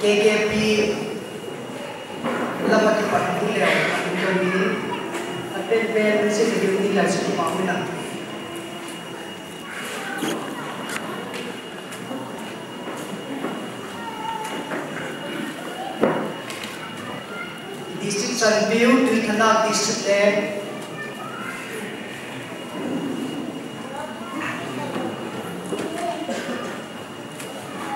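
A man speaks into a microphone over a loudspeaker in a large echoing hall.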